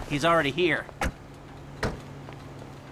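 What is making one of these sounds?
Car doors slam shut.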